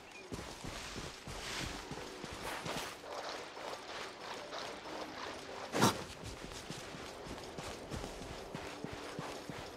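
Footsteps patter quickly over grass.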